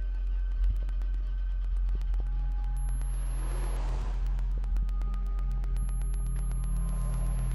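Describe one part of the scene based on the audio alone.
Electronic tones hum steadily from small devices on the floor.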